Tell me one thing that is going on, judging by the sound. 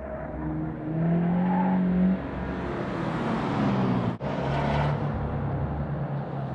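Tyres roar on tarmac as a car passes close by.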